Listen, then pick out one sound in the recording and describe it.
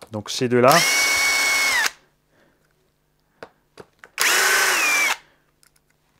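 A cordless electric screwdriver whirs in short bursts.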